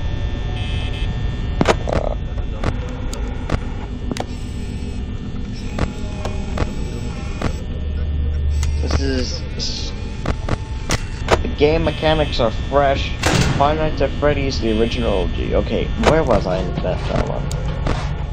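An electric desk fan hums.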